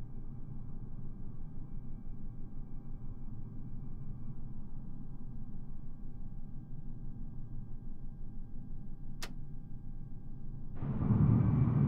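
A jet engine hums low and muffled, as if heard from inside.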